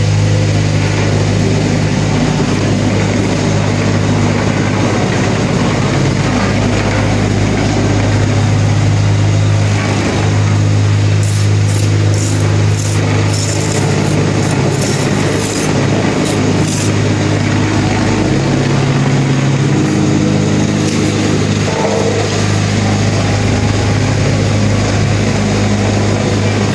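A vibrating machine hums loudly and steadily.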